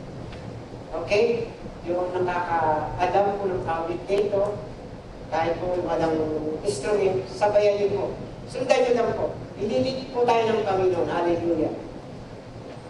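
A man speaks with animation into a microphone, heard through loudspeakers in a large echoing hall.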